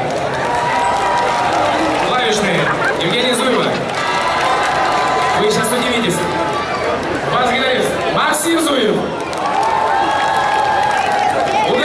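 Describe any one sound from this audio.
A rock band plays loudly with electric guitars and drums.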